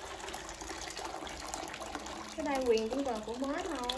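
Thick liquid pours and splashes onto cloth.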